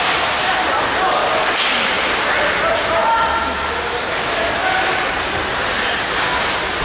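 Skates scrape and glide across the ice in a large echoing rink.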